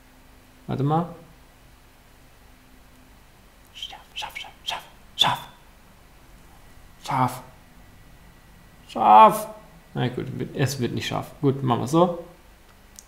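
A young man speaks in short bursts, close by, with animation.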